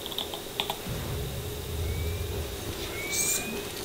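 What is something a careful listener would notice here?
A video game's repulsor beam fires with a low, rumbling hum.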